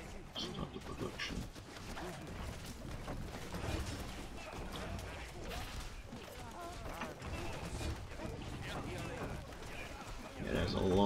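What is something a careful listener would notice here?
Weapons clash and clang in a busy battle.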